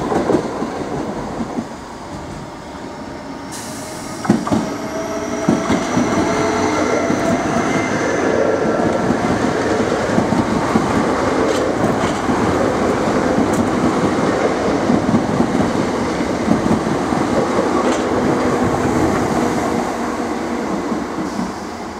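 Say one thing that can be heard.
A train rumbles past close by, loud and steady.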